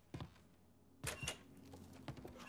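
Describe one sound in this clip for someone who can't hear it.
A door creaks open and bangs.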